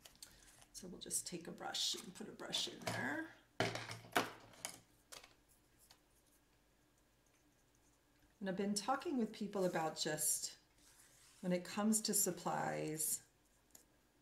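A woman speaks calmly and close to a microphone, in bursts with pauses.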